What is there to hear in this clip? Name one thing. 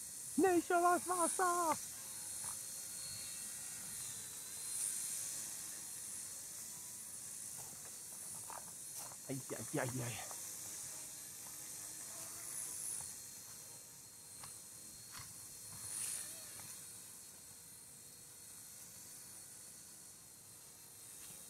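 A small toy helicopter's rotor whirs steadily nearby.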